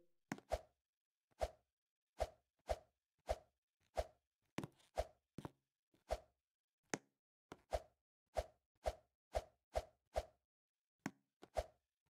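A game character lands with short, dull thuds at a quick, uneven pace.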